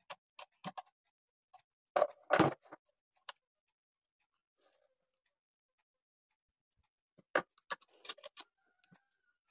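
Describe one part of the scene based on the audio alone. A small metal tool taps and scrapes against a sewing machine.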